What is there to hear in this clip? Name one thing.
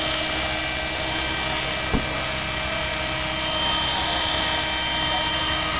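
A model helicopter's rotor whirs and buzzes close by.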